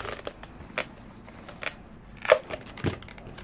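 Scissors snip through a balloon.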